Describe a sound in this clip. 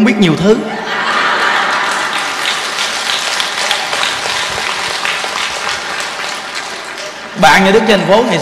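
A large crowd laughs and claps.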